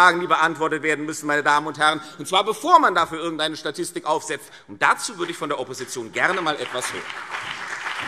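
A man speaks forcefully into a microphone in a large hall.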